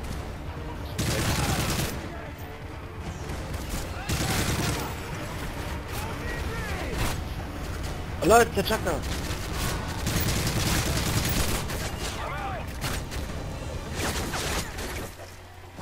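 Gunfire from a video game rifle rattles in bursts.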